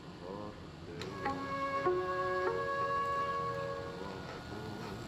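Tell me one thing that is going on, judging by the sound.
A television plays a short electronic tune.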